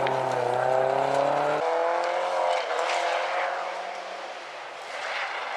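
A rally car engine roars at high revs.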